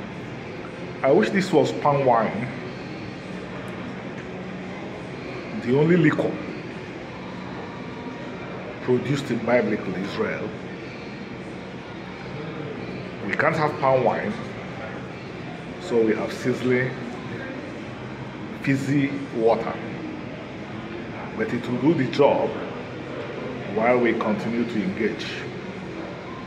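A middle-aged man speaks calmly in short phrases close to the microphone.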